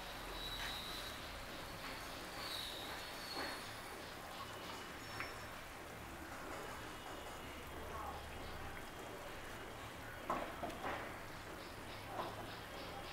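A thick curry simmers and bubbles in a pan.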